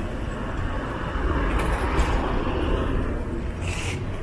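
A truck drives past close by with a loud rumble.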